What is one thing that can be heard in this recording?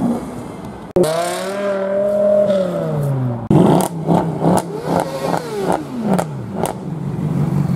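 A car engine revs loudly and its pitch falls away.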